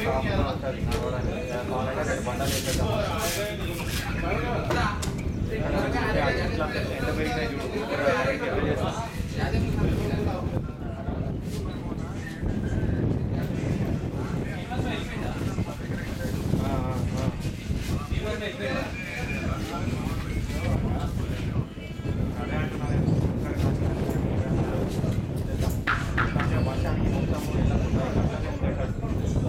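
Men talk and call out across an open field.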